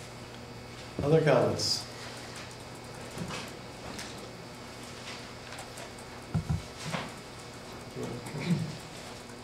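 A man speaks briefly in short bursts in a quiet room.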